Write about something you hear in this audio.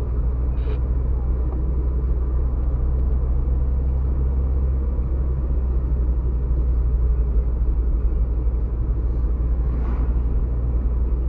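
Tyres roll over the road.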